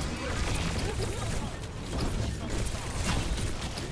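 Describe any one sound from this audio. Energy pistols fire rapid bursts of electric zaps.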